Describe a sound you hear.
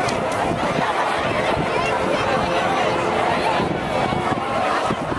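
A marching band plays brass and drums loudly outdoors.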